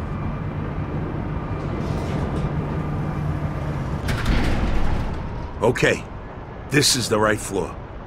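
Footsteps clank on a metal walkway.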